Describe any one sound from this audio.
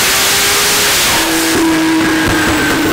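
An exhaust pops and crackles loudly.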